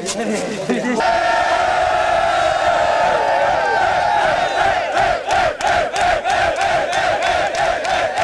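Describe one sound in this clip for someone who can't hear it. Hands clap quickly in a steady rhythm.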